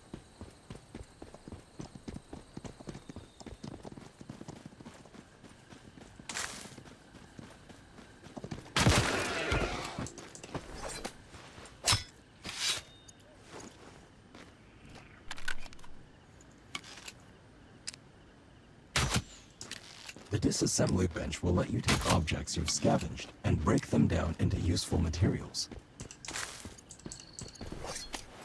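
Footsteps rustle through grass and undergrowth.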